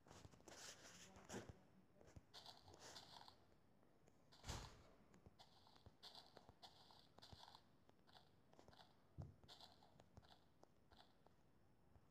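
Crunching game sound effects of dirt blocks being dug in a video game.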